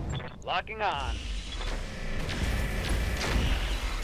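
A laser weapon fires with a loud crackling blast.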